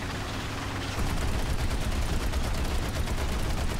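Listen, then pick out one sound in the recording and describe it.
Tank tracks clatter in a fast, even rattle.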